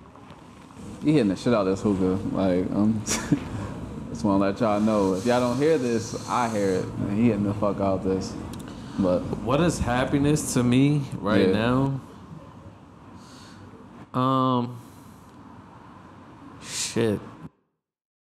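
A man speaks calmly and casually close by, picked up by a microphone.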